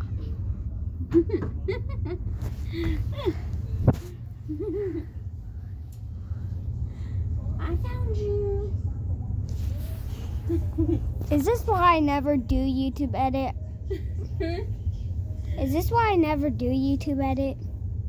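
A young child talks and babbles close to the microphone.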